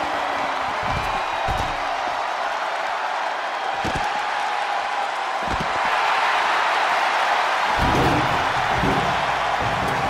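Heavy thuds of bodies hitting the floor ring out.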